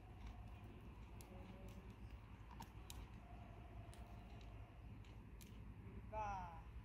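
A horse's hooves thud softly on sand as it walks.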